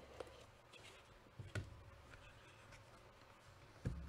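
Cardboard scrapes as a box lid slides open.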